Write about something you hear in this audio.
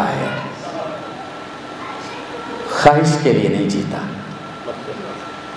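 A man speaks with feeling into a microphone, heard through loudspeakers in an echoing hall.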